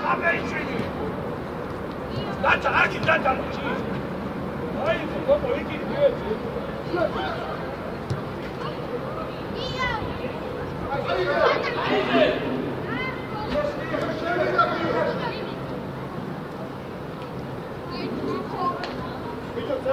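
Young players shout to each other across an open outdoor field.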